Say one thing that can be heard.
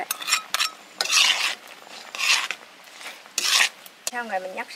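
A spatula scrapes against a metal wok.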